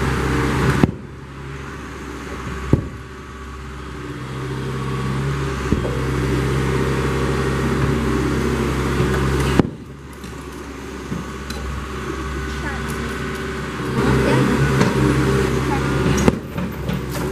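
A metal excavator bucket bangs against a concrete silo.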